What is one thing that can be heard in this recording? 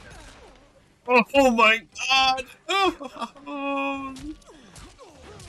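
A man grunts and shouts with effort.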